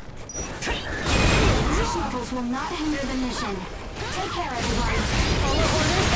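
Blades slash and clang against a beast.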